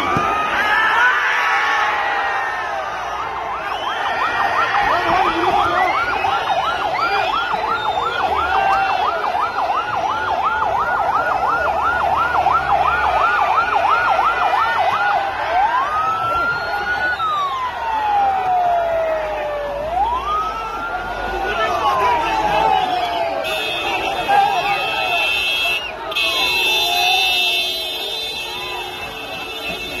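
A large crowd shouts and clamors outdoors.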